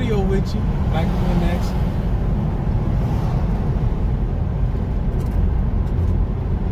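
A car's engine and road noise rumble steadily from inside the car.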